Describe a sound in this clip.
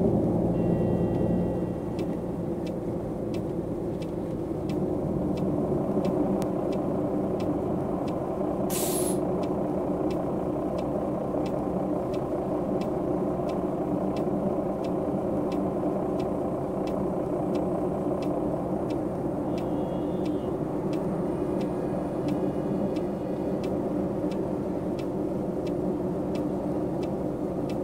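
A bus engine rumbles steadily as the bus slows and idles.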